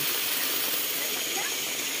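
A small stream rushes over rocks.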